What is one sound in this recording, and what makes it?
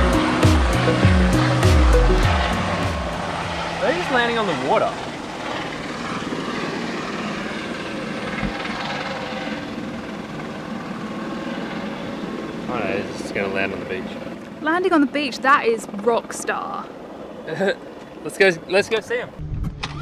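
A helicopter's rotor thumps as it flies past and lands nearby.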